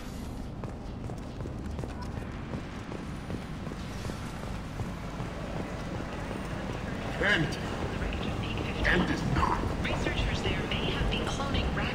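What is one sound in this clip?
Heavy boots thud in steady footsteps on a hard floor.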